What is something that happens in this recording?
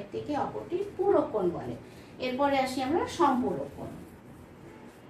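A woman speaks calmly and clearly, as if teaching, close by.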